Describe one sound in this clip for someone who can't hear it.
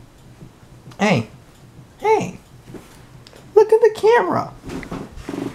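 A small dog whines close by.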